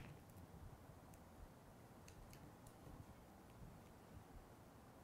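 Paper rustles and taps softly.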